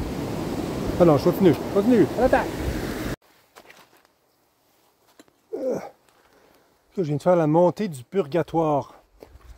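A middle-aged man talks calmly, close up.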